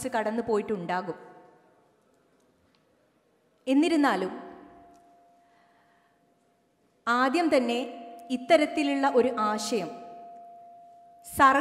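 A young woman speaks with animation into a microphone, her voice echoing through a large hall.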